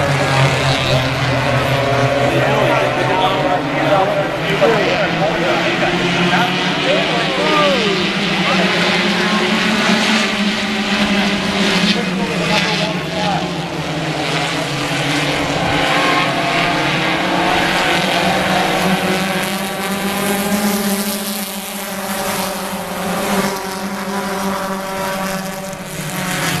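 Many race car engines roar loudly, rising and falling as the cars pass.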